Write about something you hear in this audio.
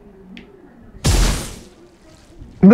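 A web shoots out with a sudden whoosh.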